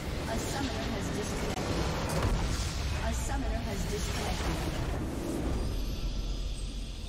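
A large crystal structure shatters and explodes with a loud rumbling blast.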